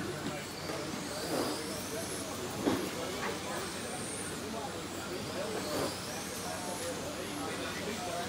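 Small electric model cars whine at high pitch as they race past, rising and falling.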